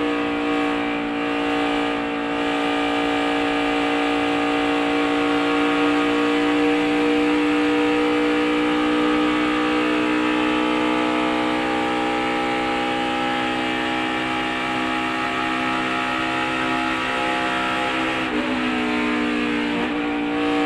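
A race car engine roars at high speed, its pitch slowly falling.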